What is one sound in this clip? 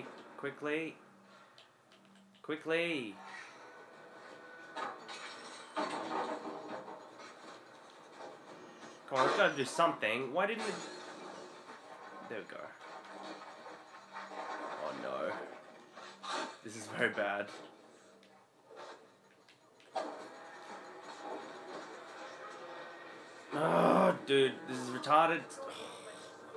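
Fighting sounds from a video game play through television speakers.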